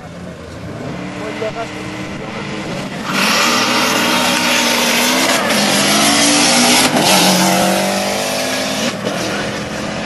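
Car engines rev loudly and roar as cars race away.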